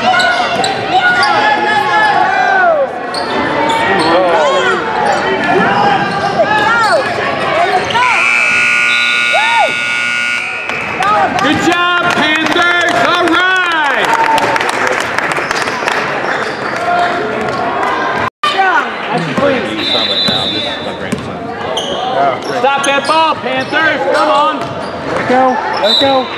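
A crowd of spectators talks and cheers.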